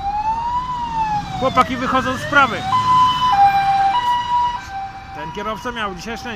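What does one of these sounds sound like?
A fire engine siren wails loudly close by, switching between rising-and-falling and two-tone patterns.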